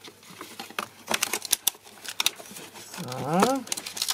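Paper rustles and scrapes as a hand folds a card.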